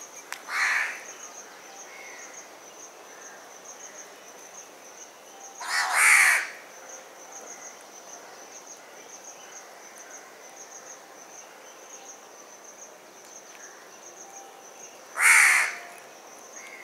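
A crow caws loudly and harshly a few times.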